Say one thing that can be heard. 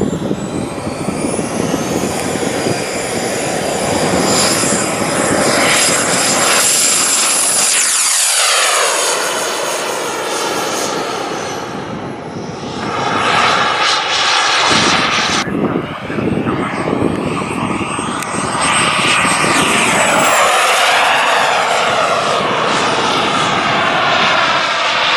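A model jet's turbine engine whines loudly, rising and falling in pitch as it speeds past.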